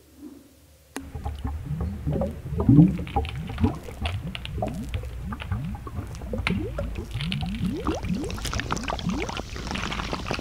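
Bubbles gurgle and pop in water.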